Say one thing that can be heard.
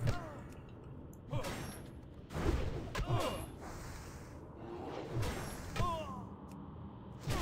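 Swords and spells strike again and again in a video game battle.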